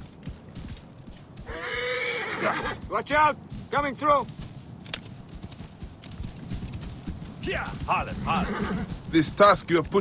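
Horses gallop, hooves thudding on sand.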